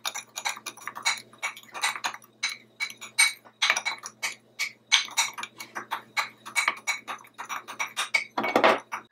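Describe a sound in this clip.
A metal spoon scrapes and clinks against a bowl while stirring a powder.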